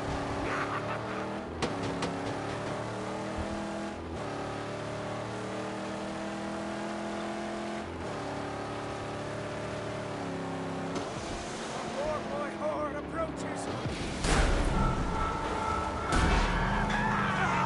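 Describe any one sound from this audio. Tyres rumble over loose sand.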